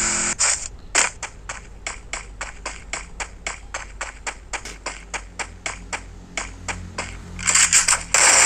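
Footsteps tap quickly and evenly.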